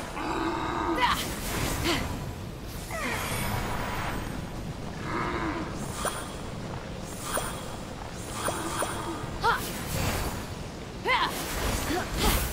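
A blade swishes and clangs in quick strikes.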